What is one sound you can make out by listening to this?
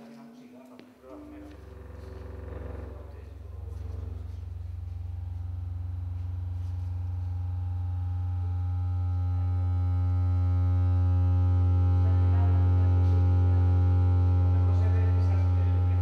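A deep electronic drone hums steadily and slowly swells louder.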